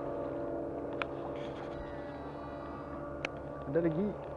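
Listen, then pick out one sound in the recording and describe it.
A fishing reel clicks and whirs up close.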